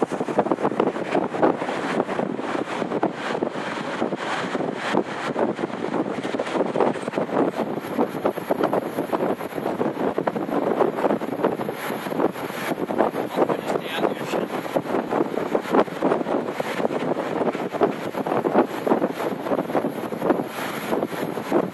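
A train rumbles and rattles steadily along the track.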